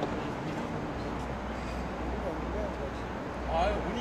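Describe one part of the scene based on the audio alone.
Footsteps scuff softly on a hard court outdoors.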